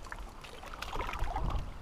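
Water splashes against a boat.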